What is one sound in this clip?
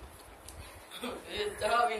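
Teenage boys laugh loudly nearby.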